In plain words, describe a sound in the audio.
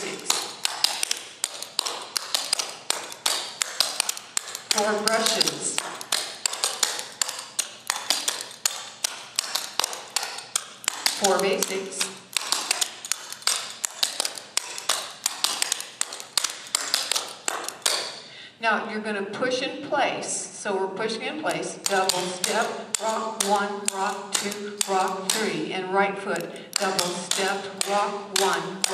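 Tap shoes click and tap rapidly on a wooden floor.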